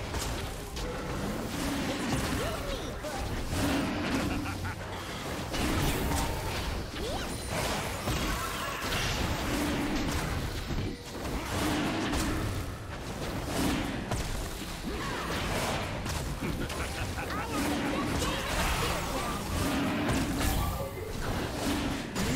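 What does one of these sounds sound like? Magical blasts and clashing effects crackle and burst in quick succession.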